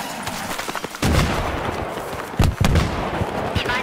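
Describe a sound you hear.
Heavy explosions boom nearby.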